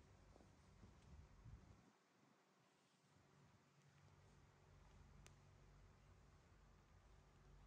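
Fabric rustles softly as small animals squirm on a blanket.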